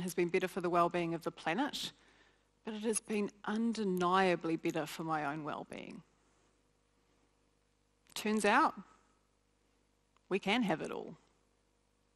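A woman speaks with feeling through a microphone, pausing between phrases.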